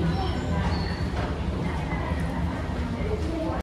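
Footsteps splash on a wet floor.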